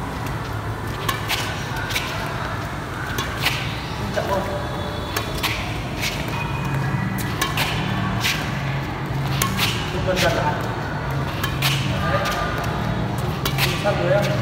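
A badminton racket taps a shuttlecock again and again.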